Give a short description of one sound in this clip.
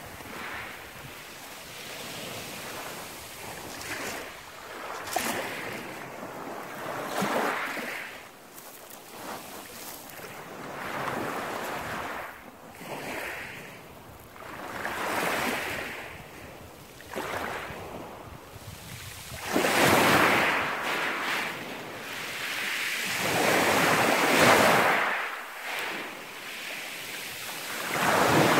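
Small waves wash up onto a pebble beach and draw back, rattling the stones.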